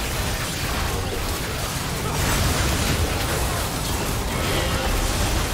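Spell effects crackle and blast in a fast battle.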